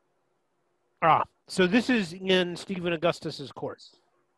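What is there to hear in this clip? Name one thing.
A man speaks calmly through a microphone on an online call.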